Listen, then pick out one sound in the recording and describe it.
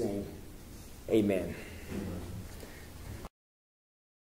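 A young man speaks aloud in a hall, with a slight echo.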